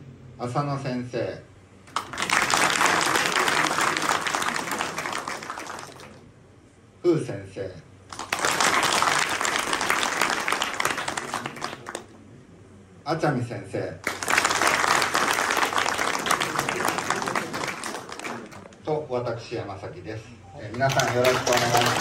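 A man announces through a loudspeaker between the bursts of clapping.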